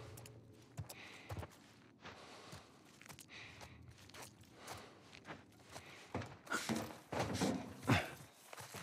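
Footsteps shuffle softly over gritty debris.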